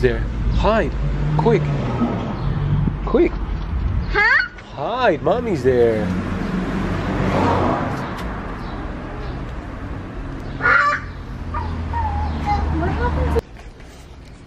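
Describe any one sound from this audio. A young girl talks excitedly close by, outdoors.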